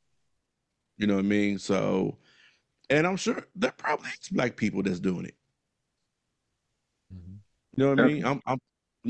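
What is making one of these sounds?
A man speaks with animation into a close microphone over an online call.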